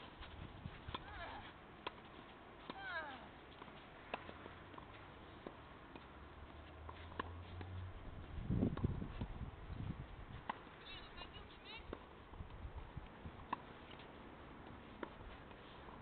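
A tennis ball is struck by rackets with sharp pops, some way off.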